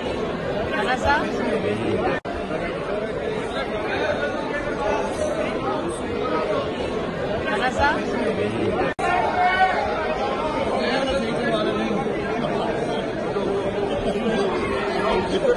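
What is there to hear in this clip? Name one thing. A man recites a prayer in a steady chant, heard through a loudspeaker in a large echoing hall.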